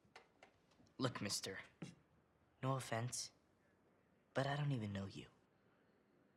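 A young man answers hesitantly.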